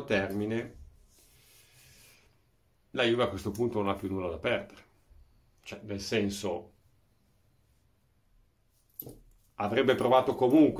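A middle-aged man speaks calmly and close up, pausing between phrases.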